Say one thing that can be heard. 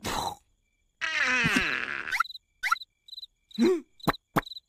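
A cartoon creature squeaks and babbles in a high voice.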